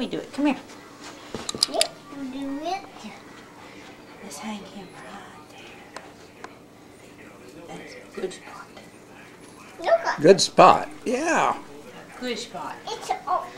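A woman speaks gently to a small child close by.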